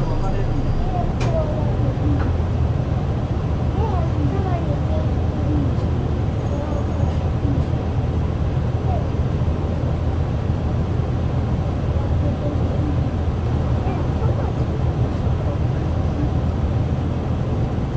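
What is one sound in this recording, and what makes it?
A bus engine idles with a low steady rumble.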